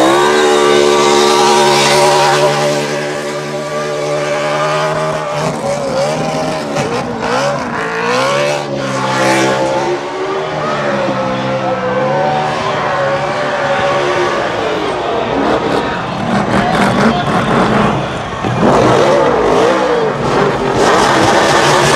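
Tyres squeal and screech as they spin on the track.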